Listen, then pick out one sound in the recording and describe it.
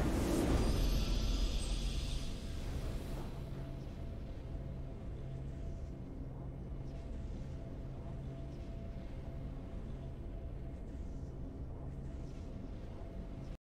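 Triumphant video game music plays with a bright swell at the start, then settles into a low, steady pulse.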